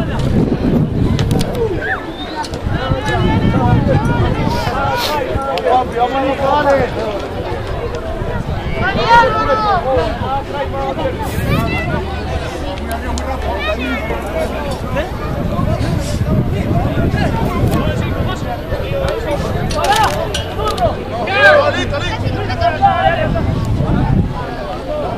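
Men shout and call out to each other across an open field.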